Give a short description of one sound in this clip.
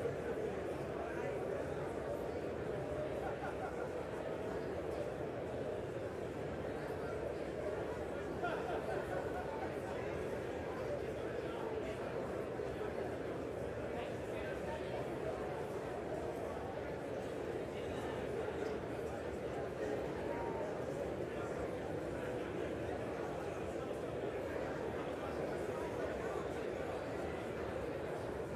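A large crowd of men and women chatters and murmurs steadily in a big echoing hall.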